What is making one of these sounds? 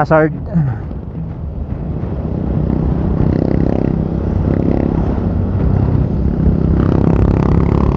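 A motorcycle engine hums steadily up close, its sound growing louder.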